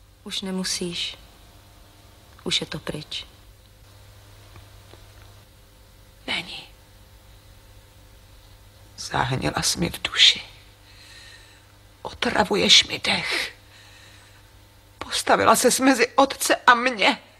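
A woman speaks quietly and emotionally, close by, in short bursts with pauses.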